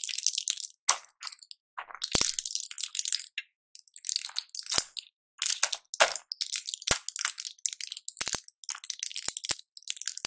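Plastic blister packs crinkle and crackle close to a microphone.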